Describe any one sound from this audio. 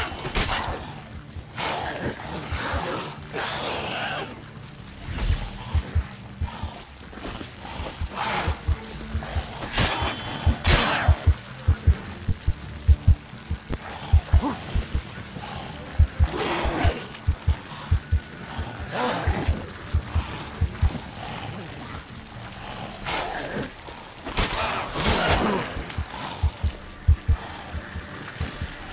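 Beasts snarl and growl.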